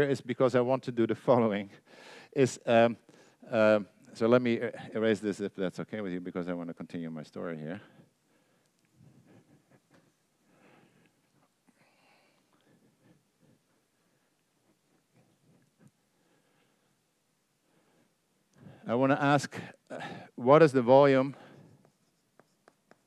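A man lectures calmly into a microphone.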